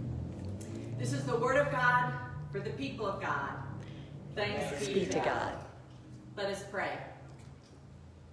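A middle-aged woman speaks calmly nearby.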